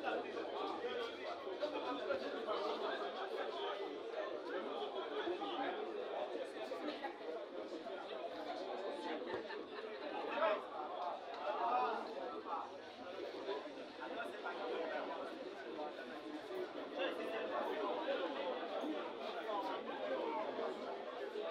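A crowd of players and onlookers shouts and chatters outdoors.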